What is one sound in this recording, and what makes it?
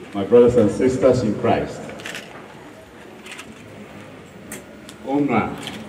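A man speaks into a microphone through a loudspeaker, with pauses.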